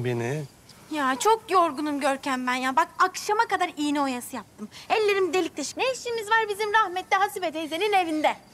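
A teenage girl speaks wearily, close by.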